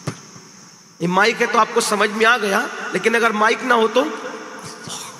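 A man chants melodiously into a microphone over loudspeakers, with echo.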